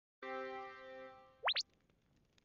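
A video game alert chime rings out.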